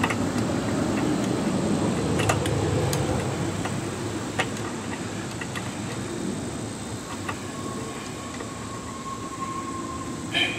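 A metal tool clicks and taps against an engine part.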